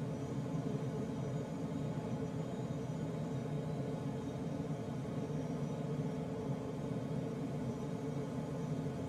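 Wind rushes steadily past a glider in flight.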